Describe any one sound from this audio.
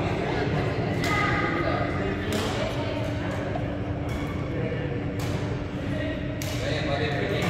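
Rackets smack a shuttlecock back and forth in a large echoing hall.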